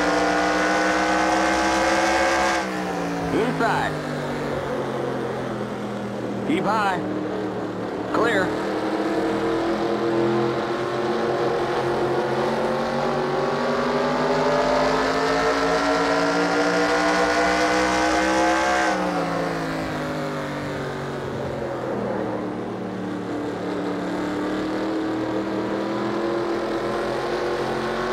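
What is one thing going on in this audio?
A race car engine roars steadily, dropping in pitch when slowing and rising again as it speeds up.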